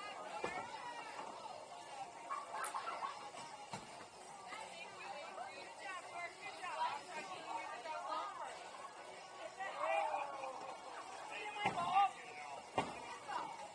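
A crowd of people chatter in a large, echoing hall.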